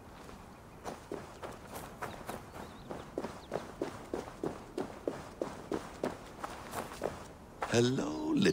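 Footsteps run quickly over dry ground and leaves.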